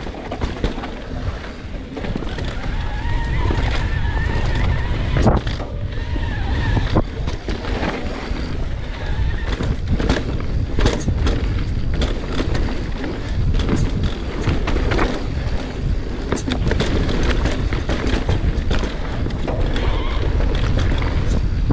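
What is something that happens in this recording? Wind rumbles past at speed.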